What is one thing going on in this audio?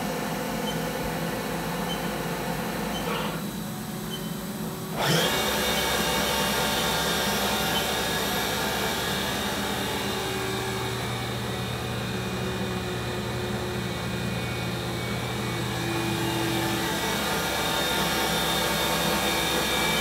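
A machine spindle spins with a steady, high whine and hum.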